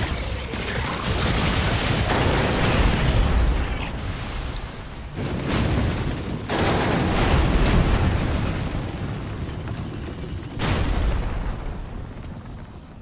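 Blades slash and clang with loud whooshing bursts during a fight.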